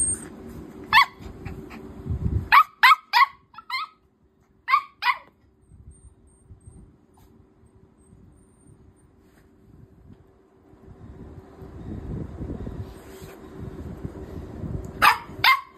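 A small dog barks sharply, close by.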